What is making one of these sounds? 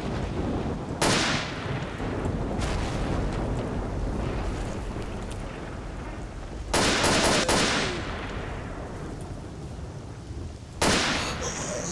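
A rifle fires loud shots that echo outdoors, singly and in a short burst.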